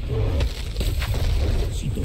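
A magic blast explodes loudly.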